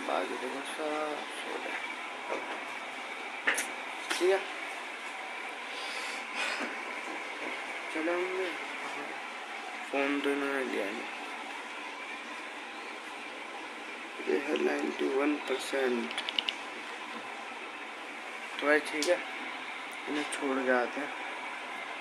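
A young man speaks close to a phone microphone in short bursts.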